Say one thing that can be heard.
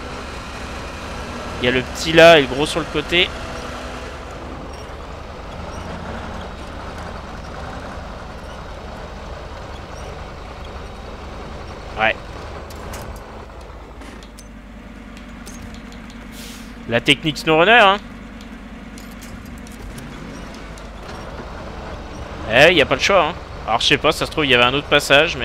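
A truck engine rumbles low and steady as the truck crawls over rocks.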